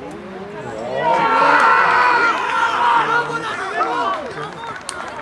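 A crowd cheers loudly after a goal.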